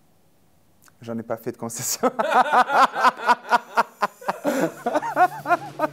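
A man laughs heartily close by.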